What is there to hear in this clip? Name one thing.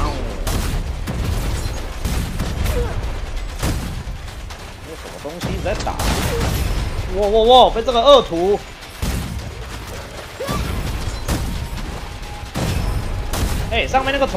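Explosions thud heavily.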